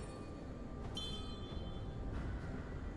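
Bright magical chimes ring out briefly.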